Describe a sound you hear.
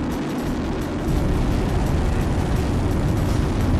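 Jet thrusters roar, growing louder.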